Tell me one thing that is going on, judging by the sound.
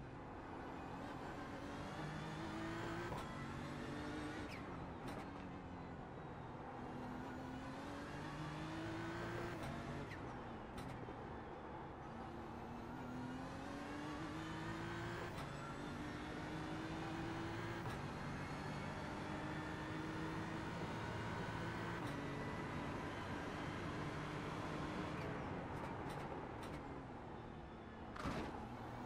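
A racing car engine roars, rising and falling in pitch as it revs up through the gears and shifts down.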